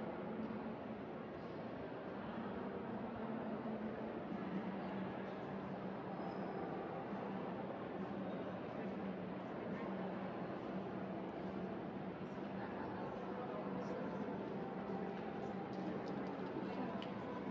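A low murmur of distant voices echoes through a large indoor hall.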